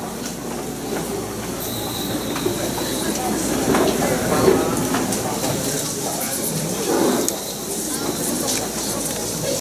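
A crowd of children and adults chatter and murmur nearby.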